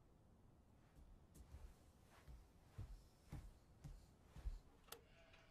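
Footsteps thud on a floor.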